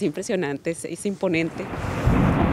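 A woman speaks close to a microphone with animation.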